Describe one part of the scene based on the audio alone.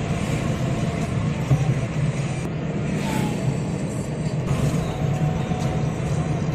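A car engine hums steadily from inside the car.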